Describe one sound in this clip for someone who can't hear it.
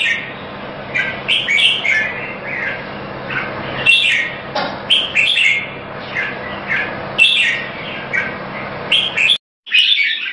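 A caged songbird sings loud, varied chirping phrases.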